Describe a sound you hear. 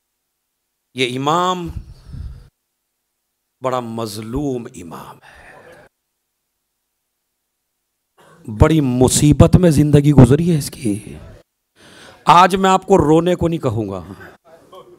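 A man speaks with feeling into a microphone, in bursts with pauses.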